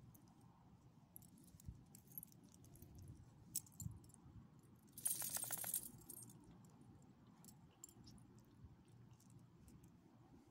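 A dog chews and tugs at a leash.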